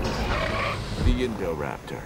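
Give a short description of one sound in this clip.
A large dinosaur growls deeply.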